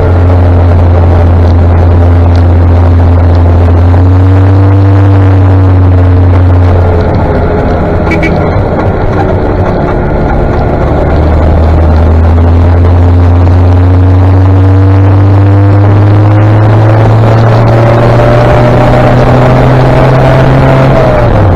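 A motorcycle engine hums steadily close by, its pitch easing down and then slowly rising.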